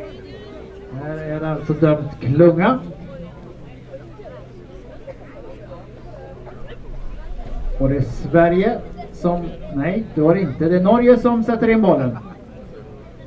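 Teenage players call out to each other outdoors on an open field.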